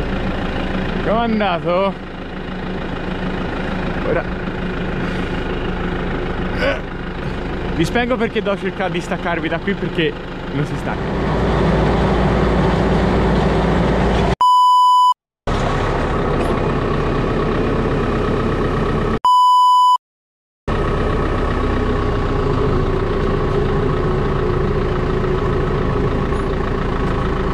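A tractor engine drones steadily nearby.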